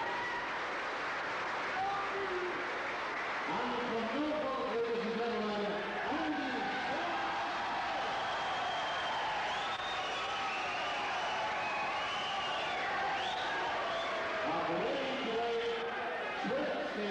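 A man announces through a microphone over loudspeakers in a large echoing hall.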